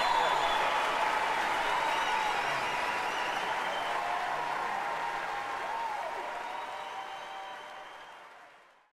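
A large audience applauds and cheers loudly in a big hall, then slowly fades away.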